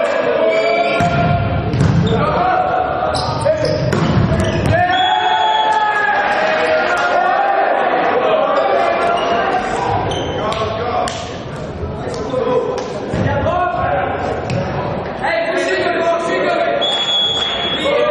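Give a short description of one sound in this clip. Young men shout and cheer on the court.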